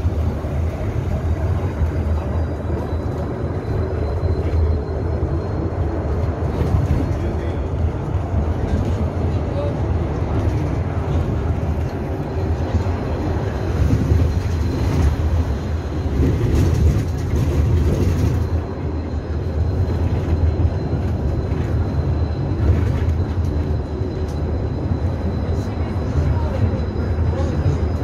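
A bus engine rumbles steadily from inside the moving bus.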